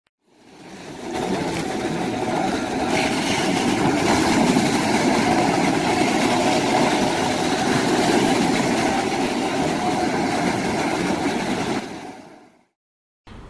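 Waves wash onto a beach.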